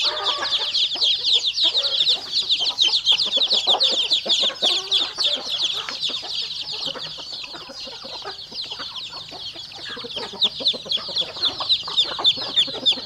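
Many chicks cheep rapidly and shrilly without pause.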